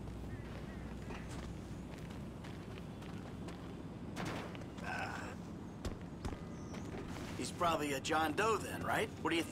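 Footsteps run quickly over a hard rooftop.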